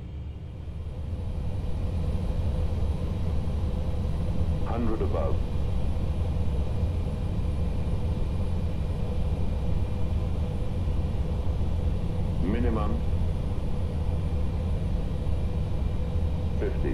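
The jet engines of an airliner drone in flight.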